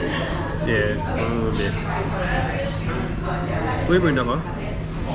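People chatter in the background of a busy room.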